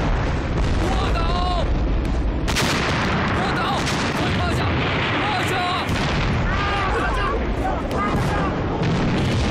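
People scream in panic.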